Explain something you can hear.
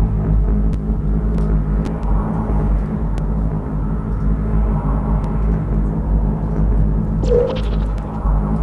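A low electronic hum drones steadily throughout.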